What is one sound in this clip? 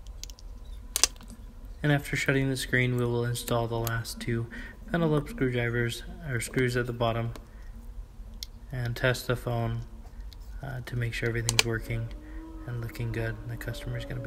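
Small plastic parts click into place.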